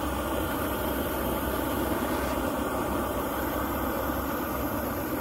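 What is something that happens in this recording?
A propane torch roars steadily outdoors.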